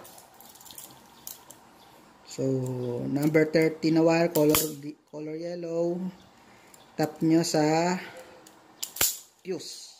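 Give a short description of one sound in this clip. A wire stripper clicks shut on a wire.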